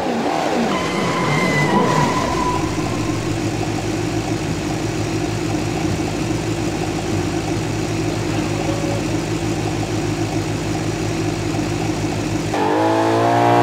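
A car engine hums as a car drives up and idles.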